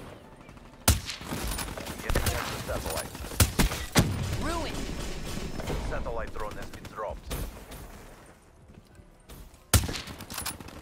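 Rifle shots ring out sharply, each followed by a loud echo.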